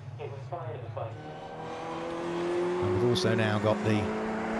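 Race car engines hum steadily as cars drive slowly past.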